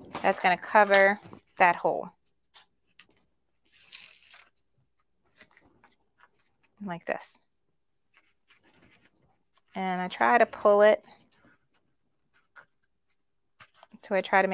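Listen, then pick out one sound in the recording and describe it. Paper rustles and slides softly.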